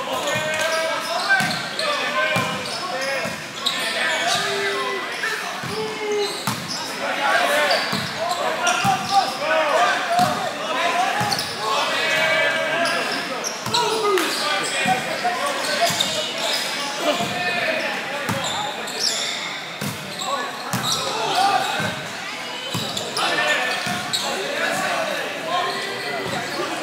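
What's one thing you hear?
Many people chatter at once in a large echoing hall.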